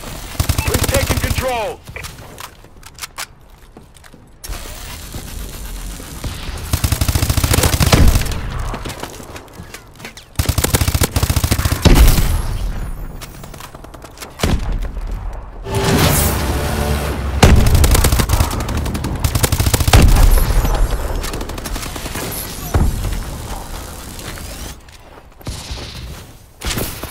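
Rapid bursts of gunfire crack loudly.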